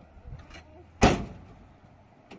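A car door slams shut with a loud bang.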